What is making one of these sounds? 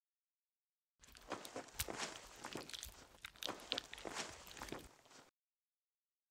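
A cloth rubs against a small plastic earbud.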